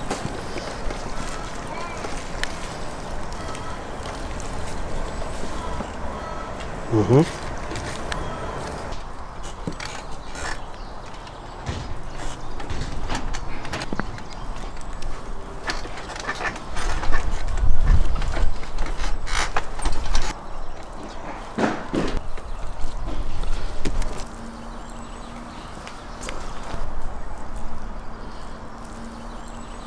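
Hands press and pat soft wet clay.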